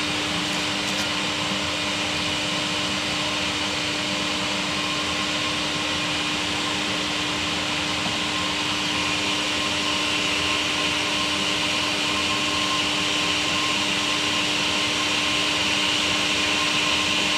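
An electric heater hums and buzzes steadily.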